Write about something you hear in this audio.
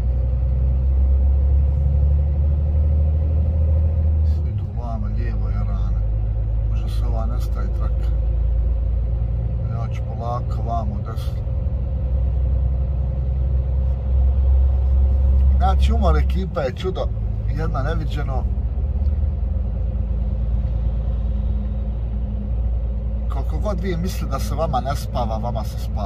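A truck engine drones steadily from inside the cab.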